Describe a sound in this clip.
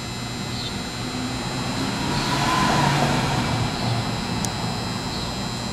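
A car drives past and fades away.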